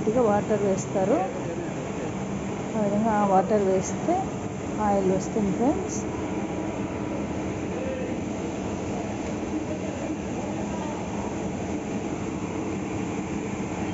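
An oil press machine hums and grinds steadily.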